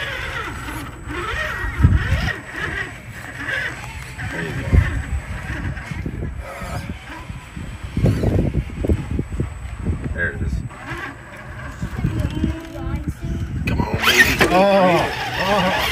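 A small electric motor whines in short bursts.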